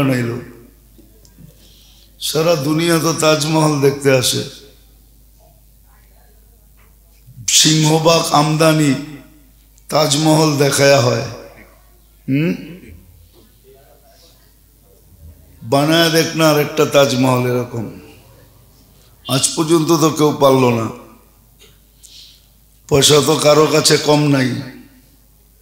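An elderly man chants a sermon in a melodic voice through a microphone, in bursts with pauses.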